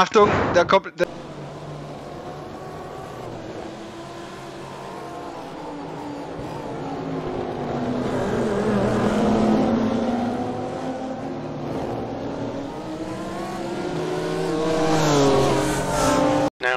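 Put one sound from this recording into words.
Racing car engines roar and whine as cars speed along a track.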